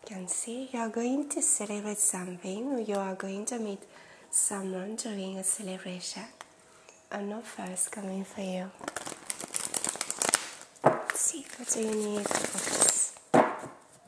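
A woman speaks calmly and warmly into a close microphone.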